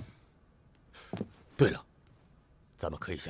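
A middle-aged man speaks in reply, close by.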